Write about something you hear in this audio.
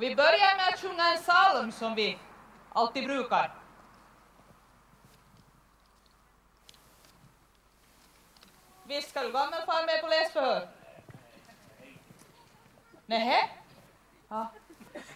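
A woman speaks clearly and theatrically outdoors, pausing between phrases.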